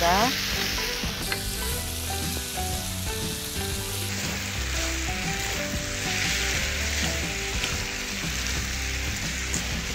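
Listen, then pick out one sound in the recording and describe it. Spatulas stir and scrape food in a pan.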